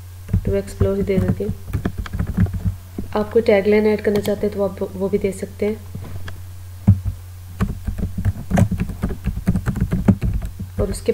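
Keyboard keys click rapidly in quick bursts of typing.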